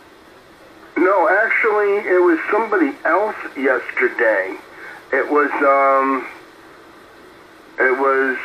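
A man talks through a radio loudspeaker, sounding thin and narrow.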